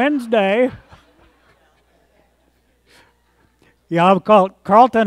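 A man speaks slowly and with emphasis through a microphone in a large echoing hall.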